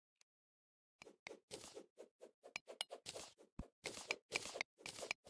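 A pickaxe chips at stone and dirt in quick, repeated knocks.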